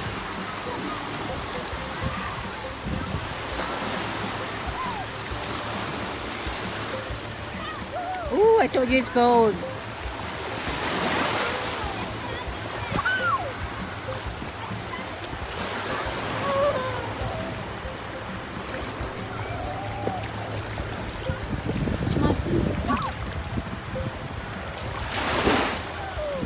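Small waves wash and break onto the shore nearby.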